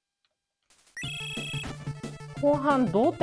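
Eight-bit chiptune video game music starts playing.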